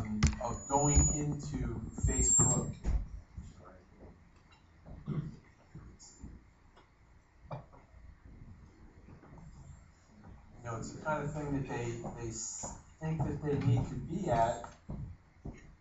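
A middle-aged man speaks into a microphone in a room, pausing between phrases.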